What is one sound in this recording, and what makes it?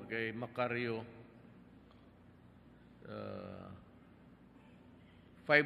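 A man speaks slowly into a microphone, his words heard through loudspeakers with pauses between phrases.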